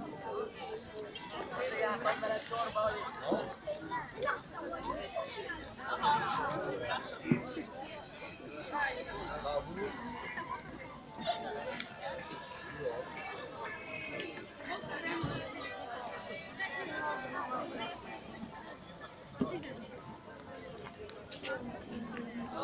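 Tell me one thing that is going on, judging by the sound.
Young women talk together nearby outdoors.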